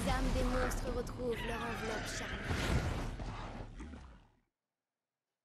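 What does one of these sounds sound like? Monsters growl and roar, then fade away.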